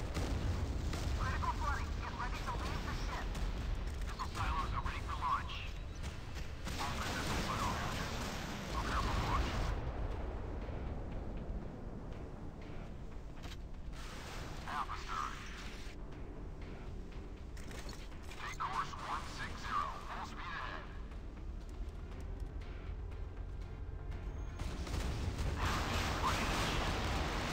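Shells explode with heavy blasts.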